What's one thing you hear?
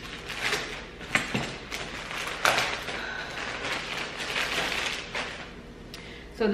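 Plastic packaging rustles and crinkles close by.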